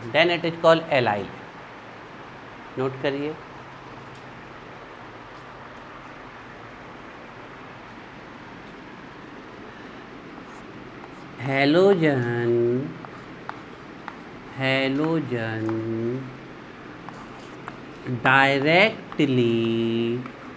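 A young man speaks in drawn-out phrases, close by.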